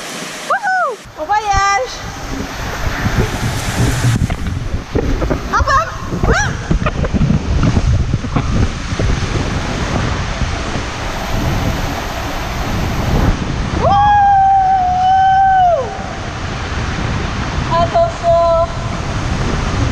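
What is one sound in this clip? Water rushes and splashes loudly inside an echoing tube.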